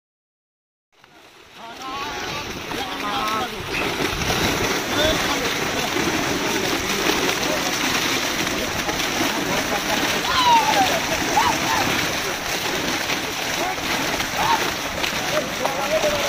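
Fish thrash and splash loudly in the water.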